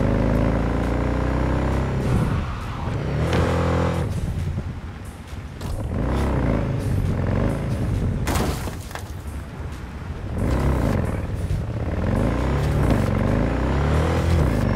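A motorcycle engine revs up and down as the bike speeds along.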